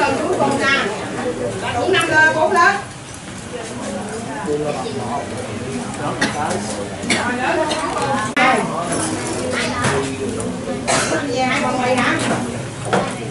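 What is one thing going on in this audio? A lively crowd chatters nearby throughout.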